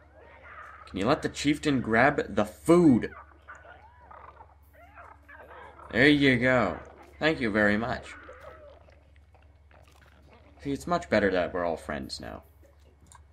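Small creatures growl and squeal as they fight.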